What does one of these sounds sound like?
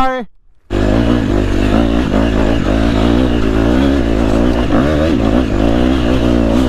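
A dirt bike engine revs loudly up close, rising and falling.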